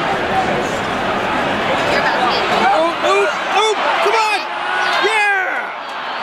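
A crowd roars as the play unfolds.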